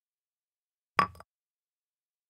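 A short chime sounds as an item is placed.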